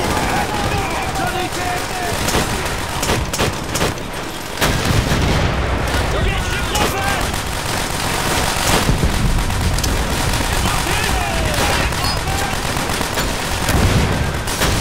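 A rifle fires in sharp cracks.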